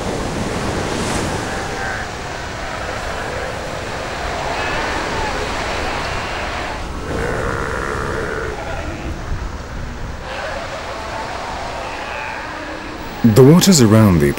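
Waves wash onto a shore.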